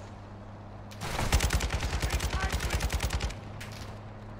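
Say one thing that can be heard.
An automatic rifle fires a rapid, loud burst of shots.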